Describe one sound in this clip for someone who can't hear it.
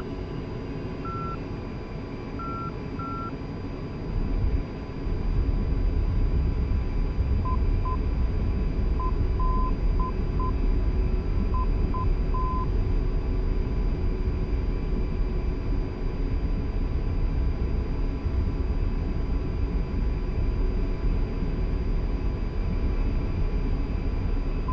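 A jet engine roars steadily, growing louder as it powers up.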